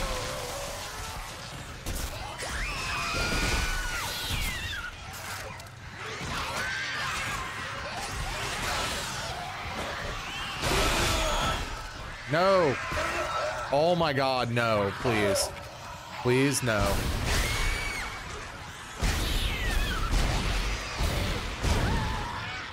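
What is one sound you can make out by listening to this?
Creatures screech and shriek.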